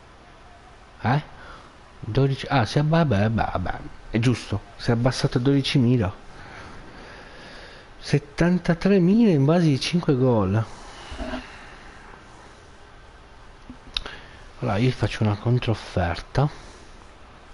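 A man talks animatedly into a headset microphone, close up.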